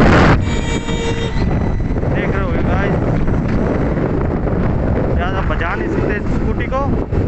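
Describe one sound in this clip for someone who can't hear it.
A scooter's motor hums as it rolls along a road.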